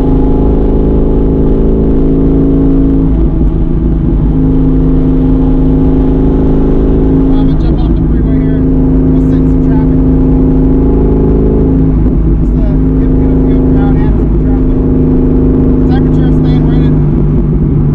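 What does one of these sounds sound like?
A car engine drones loudly with a steady hum from inside the cabin.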